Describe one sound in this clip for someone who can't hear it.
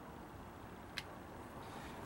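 A small plastic button clicks close by.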